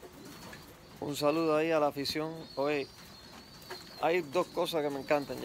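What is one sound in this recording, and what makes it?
A man talks calmly and close by, as if into a phone held at arm's length.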